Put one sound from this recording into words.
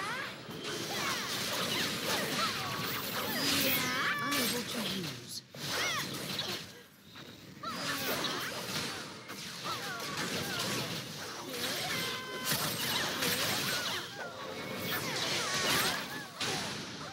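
Weapons clash and strike in a fight.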